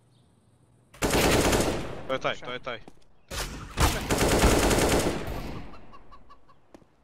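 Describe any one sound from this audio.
Rapid rifle gunfire rattles in bursts.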